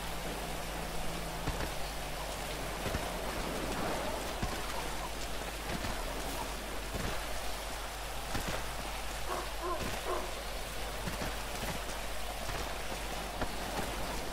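Fists land on a body with dull thuds.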